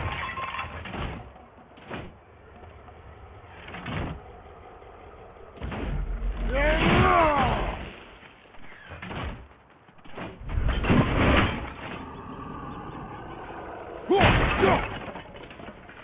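A heavy axe whooshes through the air and strikes with loud thuds.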